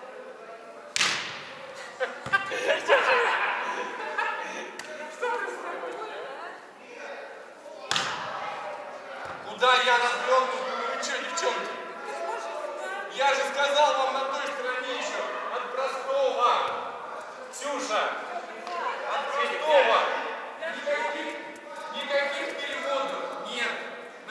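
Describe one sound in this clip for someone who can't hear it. Young men talk and call out to each other in a large echoing hall.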